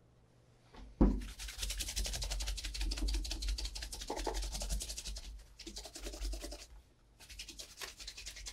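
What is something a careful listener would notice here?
A cloth rubs briskly over a leather shoe.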